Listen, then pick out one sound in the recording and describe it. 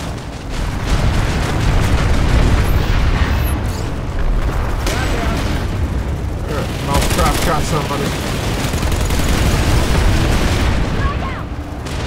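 Gunfire rattles loudly.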